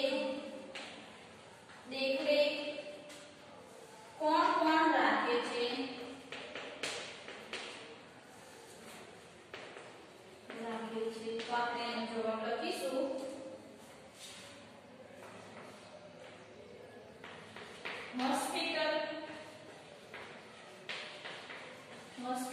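A young woman speaks calmly nearby, with a slight echo in the room.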